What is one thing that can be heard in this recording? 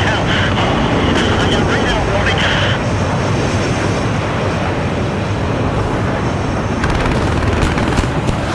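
Jet engines roar steadily as fighter jets fly close by.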